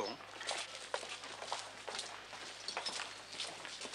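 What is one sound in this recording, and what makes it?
Footsteps clatter on cobblestones.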